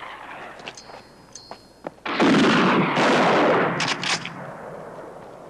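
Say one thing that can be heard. Loose gravel crunches and slides under scrambling feet.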